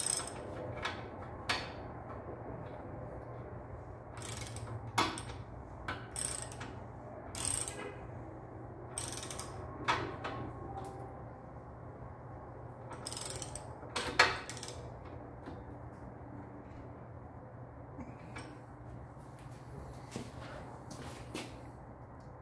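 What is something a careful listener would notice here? A metal tool clicks and scrapes against a bicycle frame.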